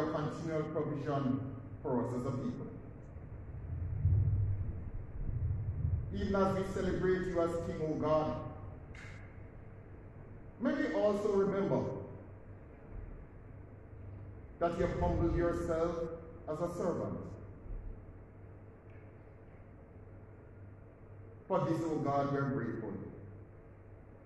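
A man speaks slowly into a microphone in a large echoing hall, pausing between phrases.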